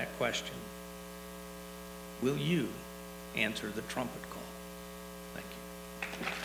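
An elderly man speaks calmly into a microphone in a large hall.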